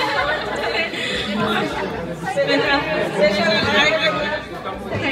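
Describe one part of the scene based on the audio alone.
A group of men and women chatter and talk over one another.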